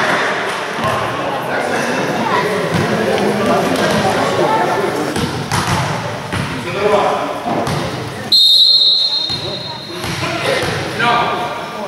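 A volleyball thuds against hands and the floor.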